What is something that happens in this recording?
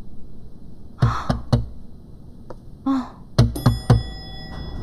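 A hand knocks on a glass door.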